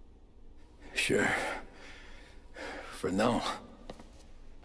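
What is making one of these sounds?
A young man answers in a low voice.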